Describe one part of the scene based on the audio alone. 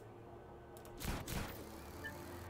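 A heavy thud sounds as a figure lands on a rooftop.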